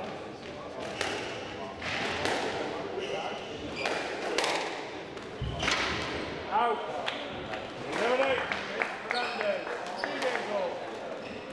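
A squash ball smacks sharply against the walls and rackets in an echoing court.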